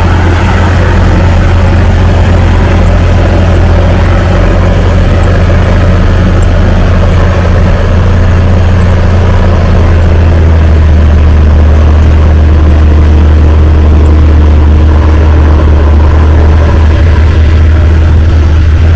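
A large tractor engine drones steadily nearby.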